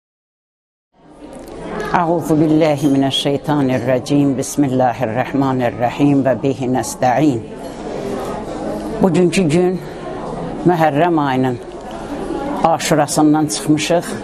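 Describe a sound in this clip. A middle-aged woman speaks calmly and steadily, close to the microphone.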